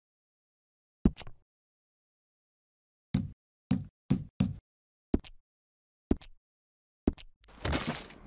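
Short menu clicks sound one after another.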